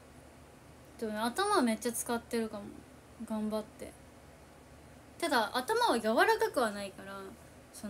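A young woman speaks casually and close to a microphone, in short bursts.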